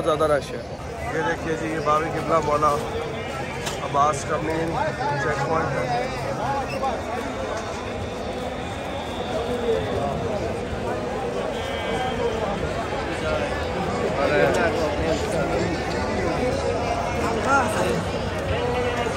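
A large crowd of men murmurs and talks all around outdoors.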